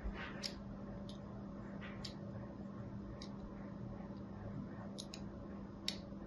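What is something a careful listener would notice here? Small scissors snip into a bar of soap with crisp clicks.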